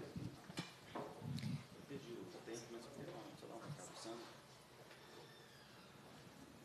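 Several adults talk at once nearby.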